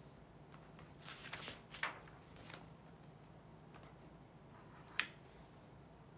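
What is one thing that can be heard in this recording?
Small objects rustle and tap as they are handled close by.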